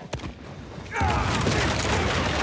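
An explosion booms and roars with fire.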